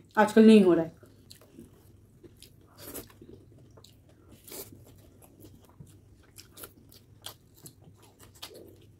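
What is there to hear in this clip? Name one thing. Food squelches and crunches as two young women chew close to a microphone.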